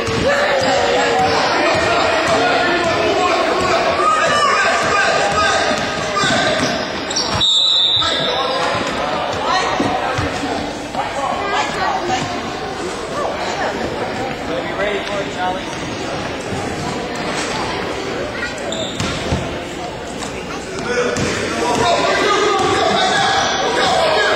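Spectators talk and call out across a large echoing gym.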